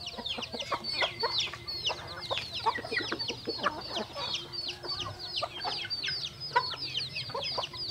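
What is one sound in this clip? Hens cluck softly.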